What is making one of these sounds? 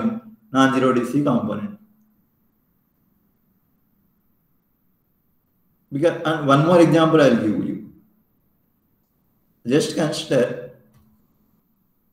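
A young man speaks calmly through a microphone, in short bursts with pauses.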